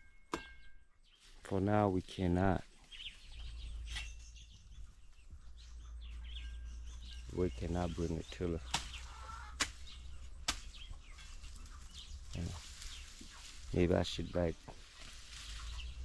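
Grass rustles and tears as weeds are pulled up by hand.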